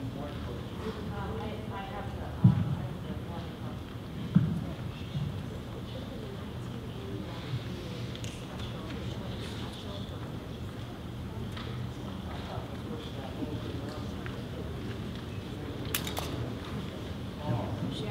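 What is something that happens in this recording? A man speaks quietly at a distance in a large echoing hall.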